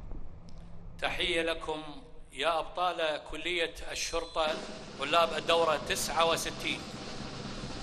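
A large group of men shouts in unison outdoors.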